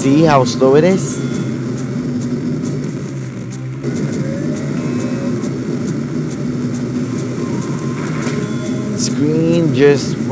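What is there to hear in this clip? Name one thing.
Short rising and falling electronic game effects chirp.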